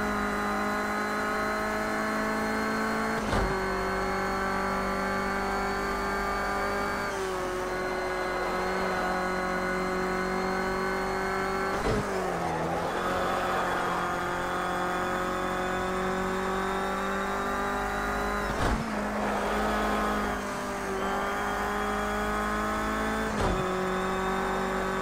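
A racing car engine roars at high revs, rising in pitch between gear shifts.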